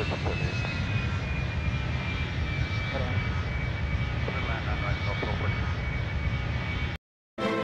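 A jet engine roars steadily with a thin, high whine.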